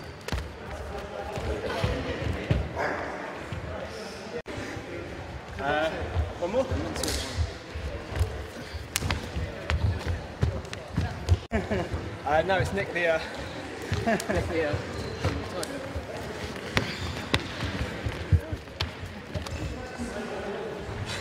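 Shoes thud and squeak on a hard floor.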